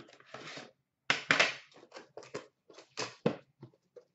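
A metal tin clunks down into a plastic bin.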